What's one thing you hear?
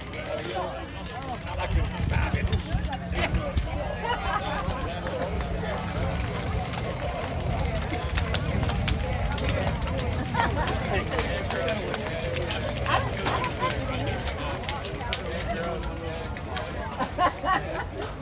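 Hands slap as players pass one another in a handshake line.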